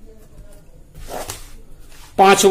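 A sheet of paper rustles.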